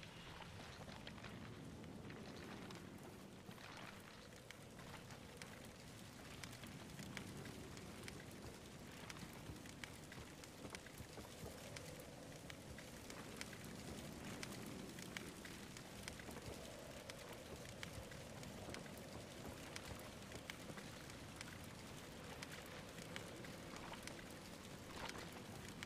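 A fire crackles nearby.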